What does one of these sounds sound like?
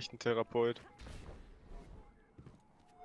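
A magical energy burst whooshes with a deep rumble.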